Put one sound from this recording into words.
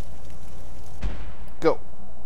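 A magical spell whooshes as it is cast.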